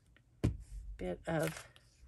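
A glue stick rubs across paper.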